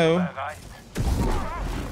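A blaster fires a shot with a sharp zap.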